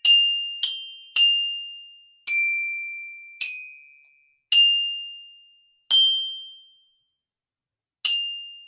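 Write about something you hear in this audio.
Single bright, bell-like notes are struck slowly on a metal percussion instrument, each ringing out and fading.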